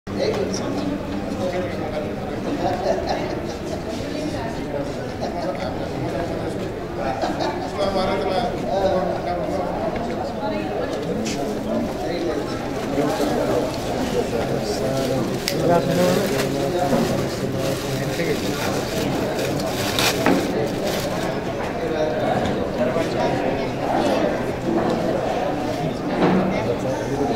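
Several men talk and murmur nearby.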